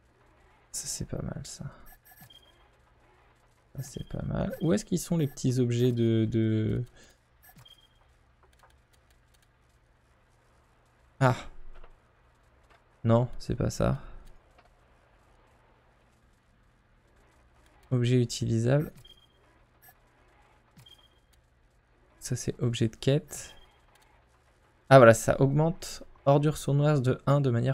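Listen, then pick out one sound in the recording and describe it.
A man talks calmly into a close microphone, in short bursts with pauses.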